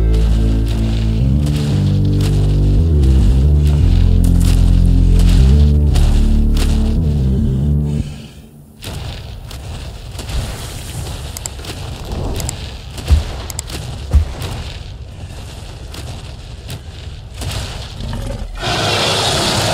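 Heavy footsteps thud steadily as a large dinosaur walks.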